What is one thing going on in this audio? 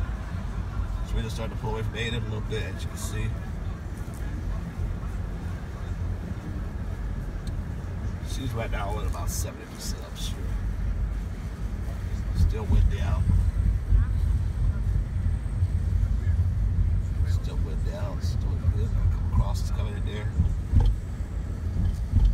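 A car engine hums and tyres rumble steadily on the road, heard from inside the car.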